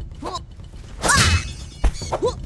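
A sword swishes and strikes.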